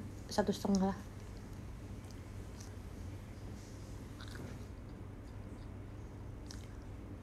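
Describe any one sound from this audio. A young woman chews food with faint crunching.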